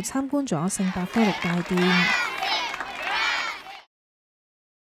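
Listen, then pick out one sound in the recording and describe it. A crowd of children cheers and shouts outdoors.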